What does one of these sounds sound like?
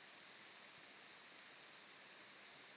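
A short game sound effect clicks as an item is collected.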